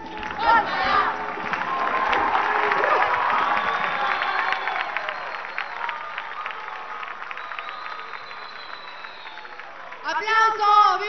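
A large outdoor crowd cheers and claps.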